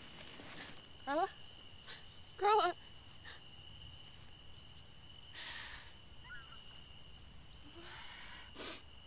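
A young woman calls out and sobs in distress nearby.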